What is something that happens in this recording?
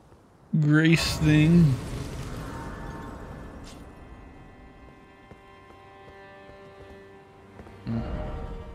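A chime rings out and slowly fades.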